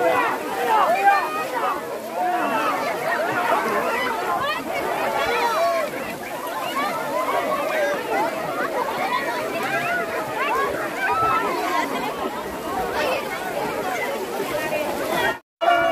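Water splashes as people wade and throw it through a shallow stream.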